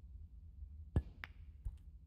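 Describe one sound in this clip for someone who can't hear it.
A cue tip strikes a snooker ball.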